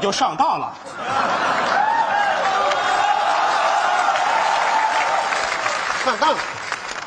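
A large audience laughs.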